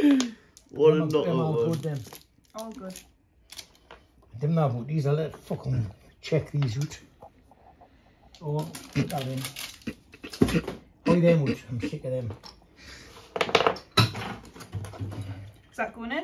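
Small plastic pieces rattle and click on a table.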